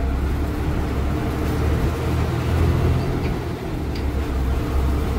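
The bus body rattles and creaks over the road.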